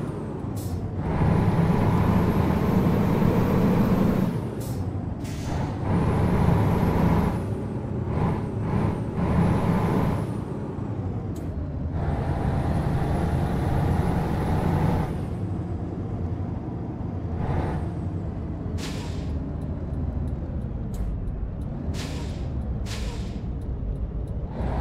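A heavy truck engine drones steadily, rising and falling as it speeds up and eases off.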